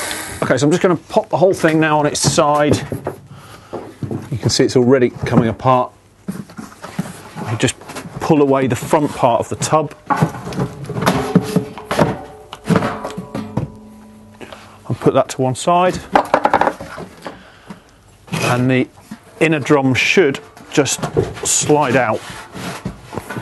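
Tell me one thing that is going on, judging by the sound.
A plastic drum casing knocks and scrapes on a wooden bench.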